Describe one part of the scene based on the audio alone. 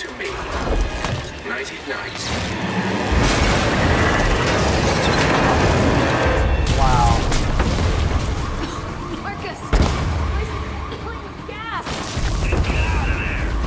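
An explosion bursts with a loud roar and crackling sparks.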